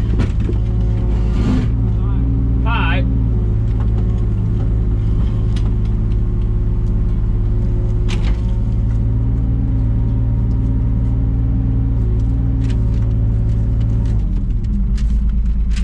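A digger's diesel engine hums steadily close by, heard from inside the cab.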